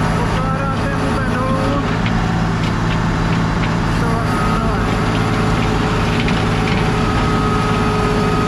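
Rubber tyres crunch slowly over loose gravel and dirt.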